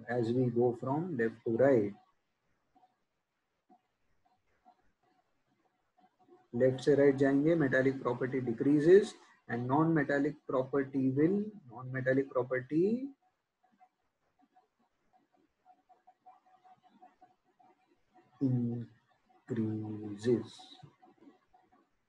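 A young man speaks calmly into a close microphone, explaining.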